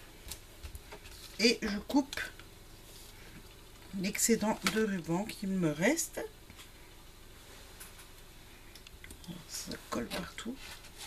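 A card slides and rustles on a cutting mat.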